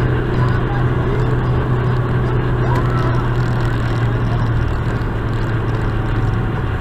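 A car engine hums steadily at highway speed.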